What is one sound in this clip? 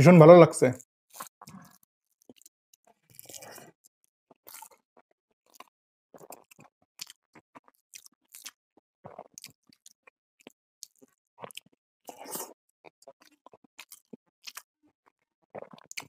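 A man chews and smacks food close to a microphone.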